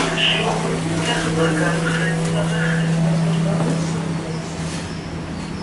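An elevator motor hums steadily, then stops.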